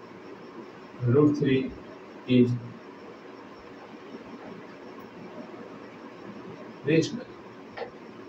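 A man speaks in short, calm phrases into a close microphone.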